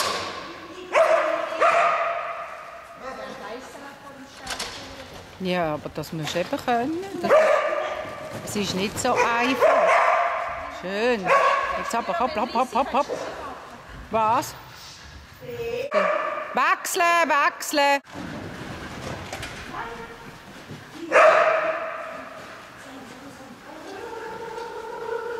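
A woman calls out loudly and eagerly in a large echoing hall.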